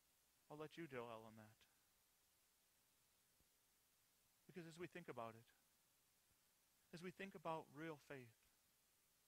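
A man speaks calmly through a microphone in short phrases with pauses.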